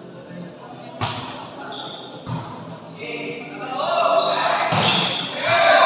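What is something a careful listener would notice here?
A volleyball is struck with sharp slaps in an echoing hall.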